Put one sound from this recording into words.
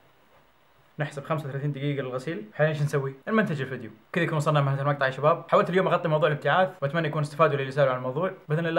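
A young man talks to the microphone close up, with animation.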